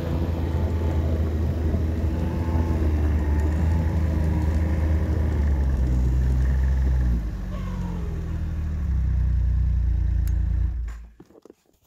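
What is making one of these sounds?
A car engine drones loudly and steadily, easing off briefly, then cuts off.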